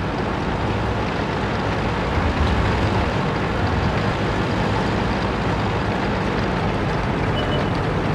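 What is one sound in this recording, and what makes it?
A heavy tank engine rumbles as the tank rolls over grass.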